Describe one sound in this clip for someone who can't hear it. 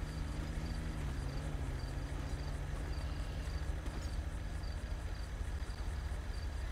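A car engine idles close by with a low, steady rumble.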